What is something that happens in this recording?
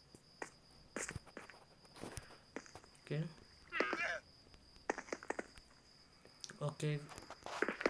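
Game blocks are placed with short, dull clicks.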